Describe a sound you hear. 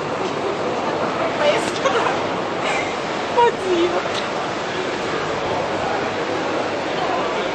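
A crowd of people talks and shouts outdoors.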